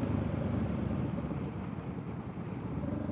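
A parallel-twin cruiser motorcycle engine quietens as the rider eases off.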